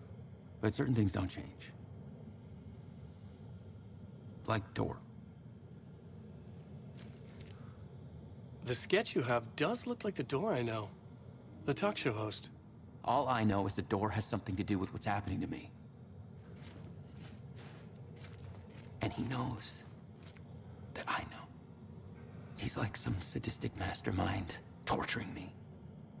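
A man speaks in a low, troubled voice close by.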